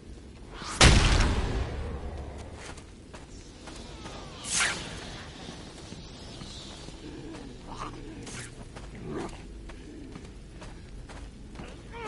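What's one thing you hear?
Footsteps tread softly on stone.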